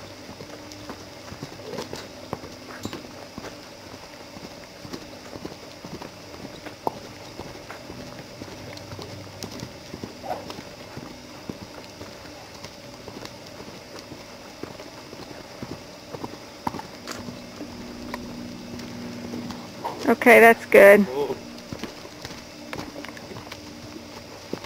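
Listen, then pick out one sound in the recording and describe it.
Hooves thud softly on dirt as a horse trots and canters in circles.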